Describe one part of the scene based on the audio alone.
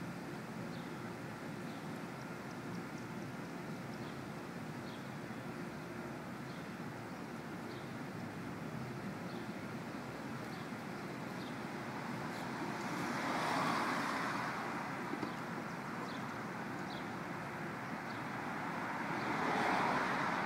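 A dog splashes and blows bubbles in a bowl of water.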